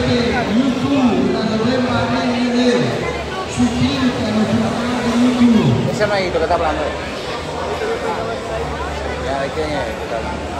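A crowd of men talk and call out.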